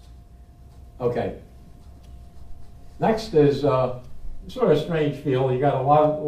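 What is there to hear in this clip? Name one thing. A man speaks calmly, close by, in short phrases.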